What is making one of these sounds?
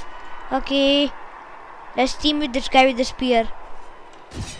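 A young boy speaks with animation close to a microphone.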